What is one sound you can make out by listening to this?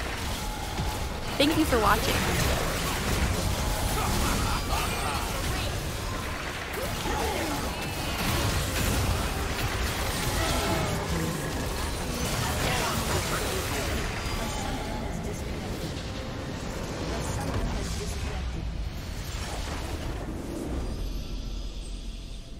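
Magic blasts crackle and boom in a hectic game battle.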